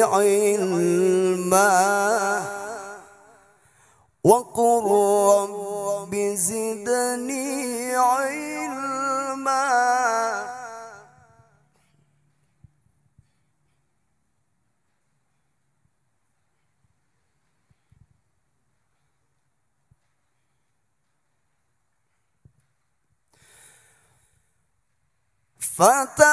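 A man chants melodically into a microphone, with a sustained, wavering voice.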